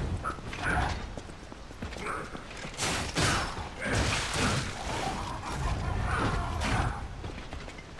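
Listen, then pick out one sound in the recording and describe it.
Heavy blows thud and whoosh during a fight.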